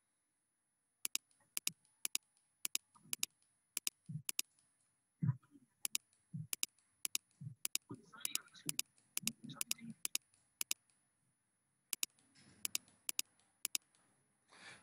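A computer mouse clicks repeatedly.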